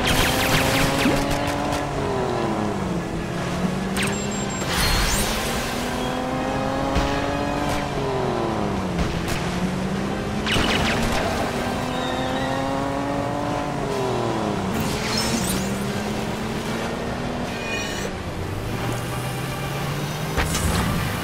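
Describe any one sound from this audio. A small motorboat engine hums and revs up and down as the boat speeds over water.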